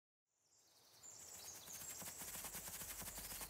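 Quick footsteps run over a forest floor.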